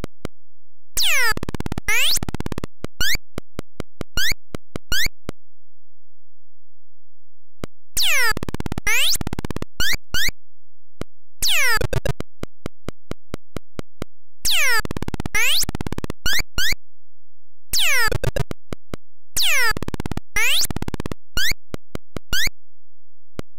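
Electronic sweeping bleeps rise and fall in bursts as items are collected.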